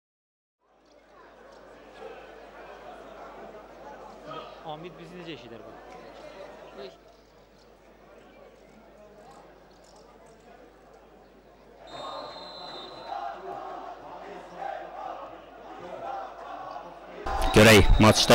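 A stadium crowd murmurs and cheers from a distance.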